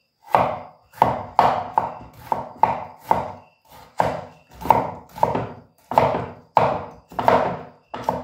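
A knife chops steadily on a wooden cutting board.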